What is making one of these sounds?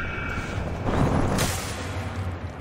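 A body lands with a soft thud in hay.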